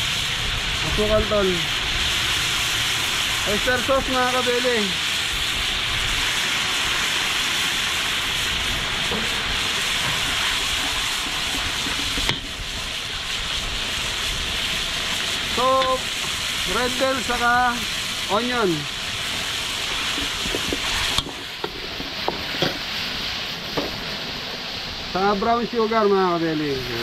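A man talks through a face mask, close by.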